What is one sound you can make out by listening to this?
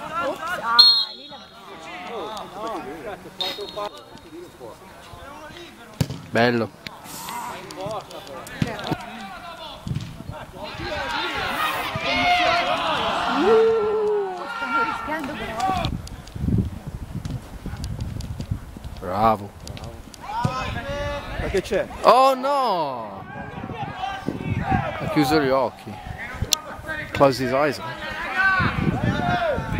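Young players shout and call out to each other across an outdoor pitch.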